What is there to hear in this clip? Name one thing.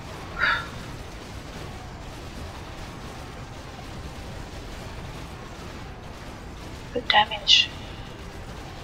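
Short electronic game spell sounds chime and zap.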